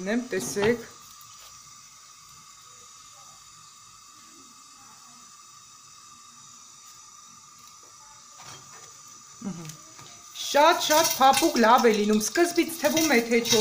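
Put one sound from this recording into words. Oil sizzles softly in a covered frying pan.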